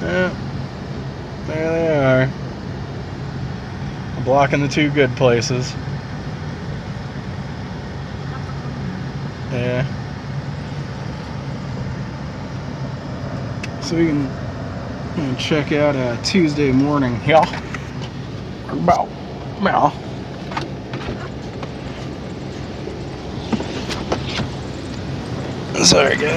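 A car engine idles with a low steady hum.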